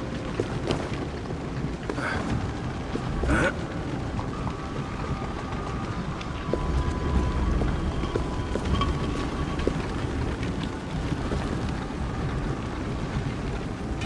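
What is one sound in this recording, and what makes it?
A heavy stone block scrapes slowly across a stone floor.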